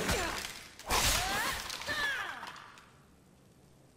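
Bones clatter as a skeleton collapses.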